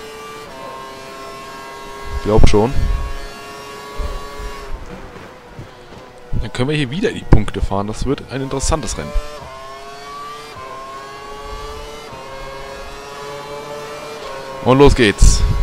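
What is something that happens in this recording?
A racing car engine whines at high revs, climbing in pitch through each gear change.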